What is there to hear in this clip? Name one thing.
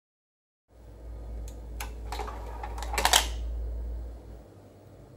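A CD player's tray whirs as it slides open.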